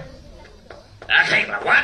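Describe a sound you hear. An elderly man shouts angrily.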